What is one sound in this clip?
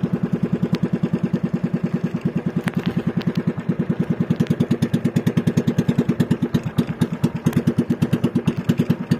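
A small outrigger boat's engine chugs.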